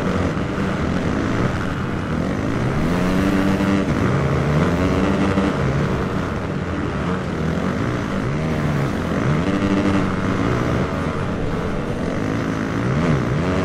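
Mud sprays and splatters under the tyres.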